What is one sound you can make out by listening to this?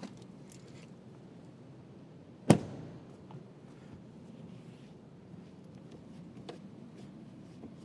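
A cloth squeaks and rubs against a car window.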